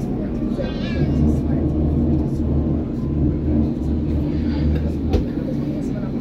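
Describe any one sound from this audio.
A train's roar grows louder and deeper inside a tunnel.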